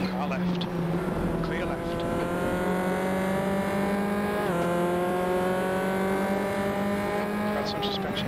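A racing car engine whines at high revs, slowly climbing in pitch and dropping briefly at a gear change.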